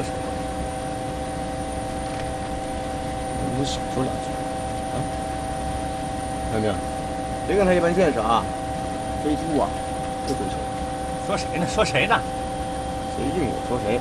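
A helicopter engine drones steadily inside the cabin.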